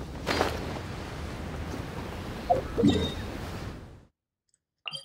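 Wind rushes past a gliding figure.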